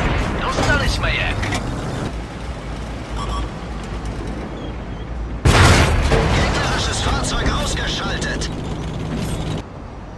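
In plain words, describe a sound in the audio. Shells explode with heavy blasts.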